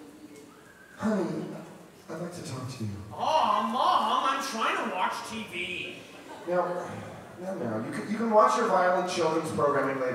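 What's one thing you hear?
A second man answers into a microphone, heard through loudspeakers.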